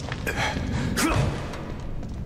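A heavy door creaks and bangs open.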